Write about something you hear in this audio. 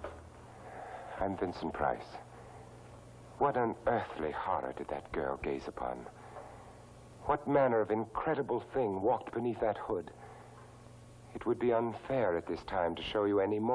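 A man speaks slowly and dramatically, close by.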